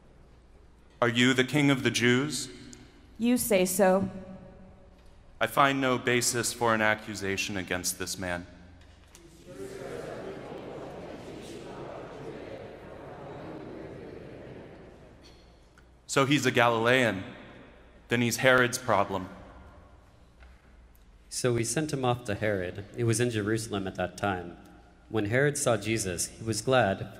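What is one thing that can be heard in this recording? A man reads aloud calmly through a microphone, echoing in a large hall.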